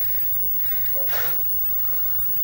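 A young man groans weakly in pain.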